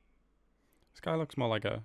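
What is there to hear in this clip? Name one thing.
A young man speaks loudly and close into a microphone.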